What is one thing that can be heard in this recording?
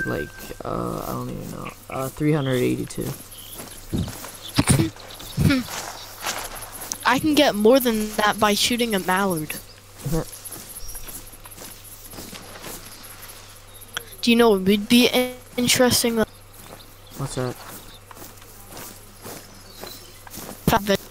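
Footsteps rustle through leaves and undergrowth.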